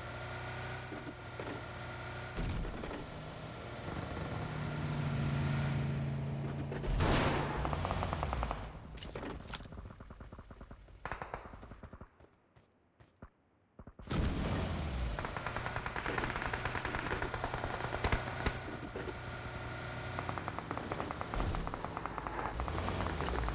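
A car engine hums and revs while driving.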